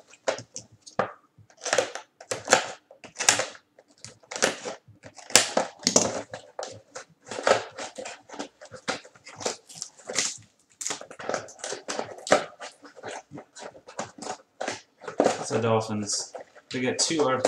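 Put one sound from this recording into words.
Cardboard flaps rustle and scrape as packs are pulled from a box.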